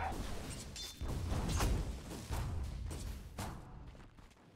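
Magic spells whoosh and burst.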